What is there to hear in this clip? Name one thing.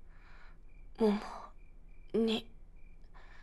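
A young woman speaks quietly and closely.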